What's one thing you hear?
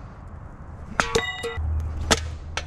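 A metal can rings sharply as it is hit.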